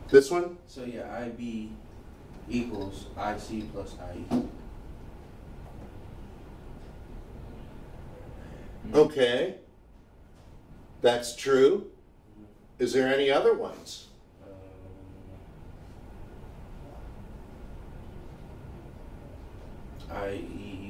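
An elderly man lectures, speaking calmly in bursts.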